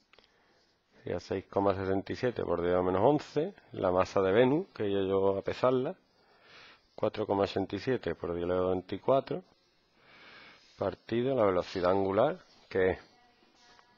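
A man speaks calmly and clearly into a microphone, as if lecturing.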